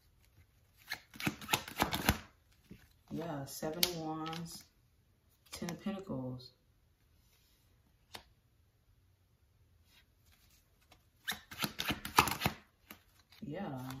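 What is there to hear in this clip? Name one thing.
Playing cards are shuffled with a quick papery riffle.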